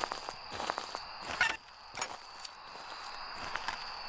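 A lighter clicks open and sparks alight.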